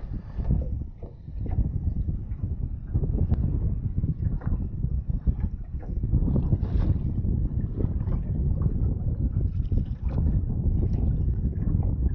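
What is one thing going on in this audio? Water laps against the side of a small boat.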